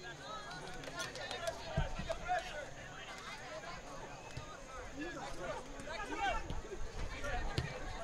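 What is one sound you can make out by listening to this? Players call out to each other across an open field.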